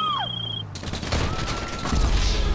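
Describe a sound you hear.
A car crashes with a loud bang.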